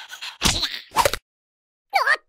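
A creature chomps and crunches noisily on food.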